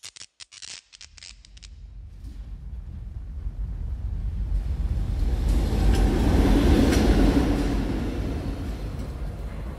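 A subway train rumbles along, growing louder.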